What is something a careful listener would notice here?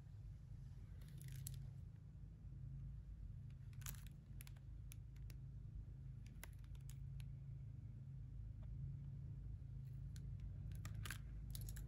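A plastic case crinkles and clicks in someone's hands.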